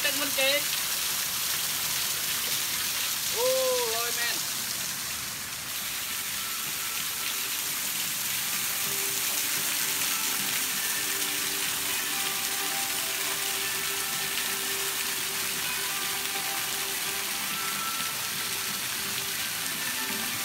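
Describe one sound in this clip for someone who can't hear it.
Water splashes steadily from a waterfall onto rocks.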